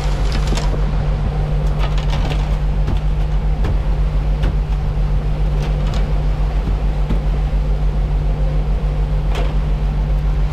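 A boat's engine drones steadily.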